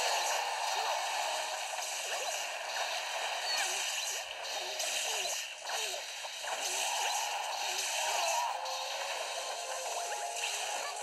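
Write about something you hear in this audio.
Video game sound effects whoosh and blast through a small speaker.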